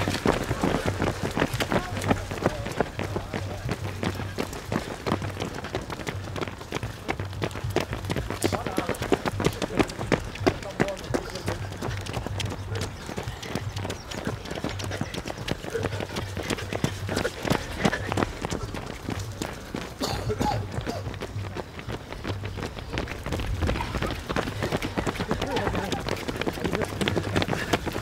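Many running shoes patter on a paved path.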